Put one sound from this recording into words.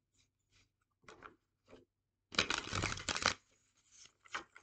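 Cards shuffle and riffle quickly, fluttering in short bursts.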